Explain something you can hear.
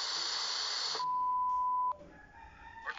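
An alarm beeps once with a steady tone.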